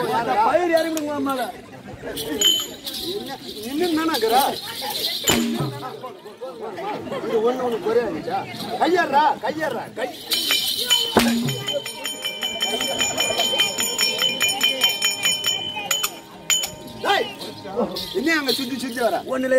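Ankle bells jingle.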